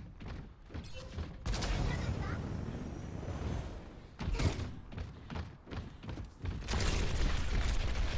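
Energy guns fire in quick bursts.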